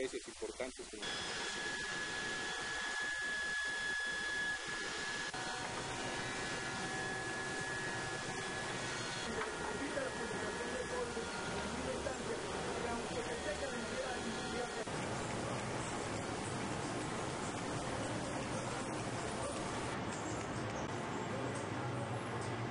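A machine hums and whirs steadily.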